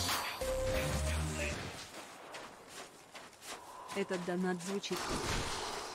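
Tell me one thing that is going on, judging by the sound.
A young woman talks with animation, close to a microphone.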